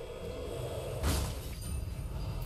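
A blade strikes with a heavy, ringing thud.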